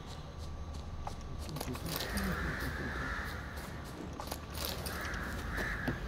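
Footsteps crunch through grass and soft ground.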